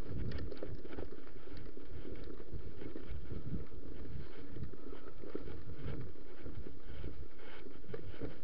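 A bicycle rattles over rough ground.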